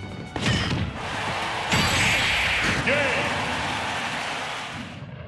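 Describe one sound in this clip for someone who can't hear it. Fighting sound effects clash and whoosh.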